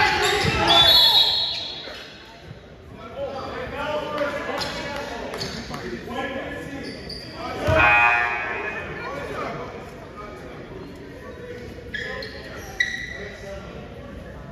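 A crowd of spectators talks and shouts in an echoing gym.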